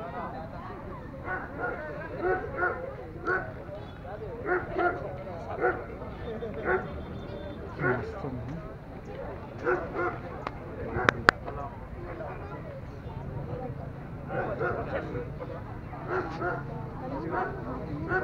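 Several young men and women chatter nearby outdoors.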